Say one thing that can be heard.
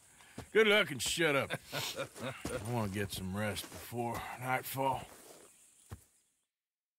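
A man speaks in a gruff, low voice close by.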